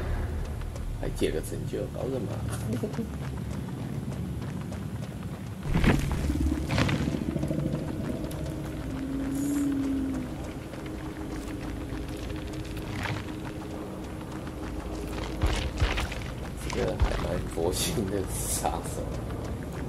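A young man talks casually close to a microphone.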